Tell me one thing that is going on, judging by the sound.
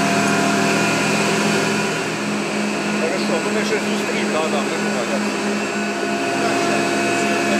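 Industrial machinery hums steadily.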